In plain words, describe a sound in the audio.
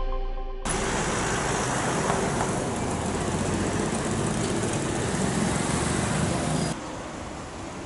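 Motorcycles and cars drive past on a busy street.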